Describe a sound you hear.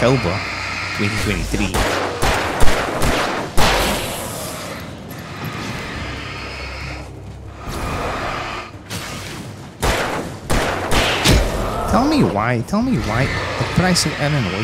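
A young man talks into a close microphone with animation.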